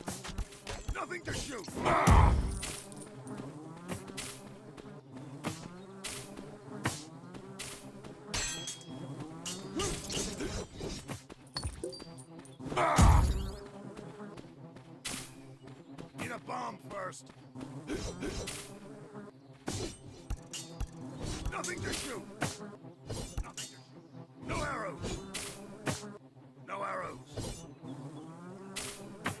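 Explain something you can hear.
Swords clash and strike in quick, repeated hits.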